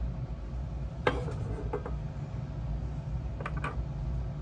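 Metal parts clink as they are handled.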